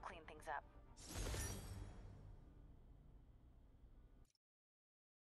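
A bright game chime rings out and slowly fades.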